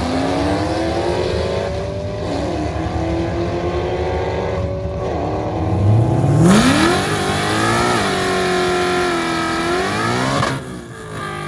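A car engine revs loudly in repeated bursts.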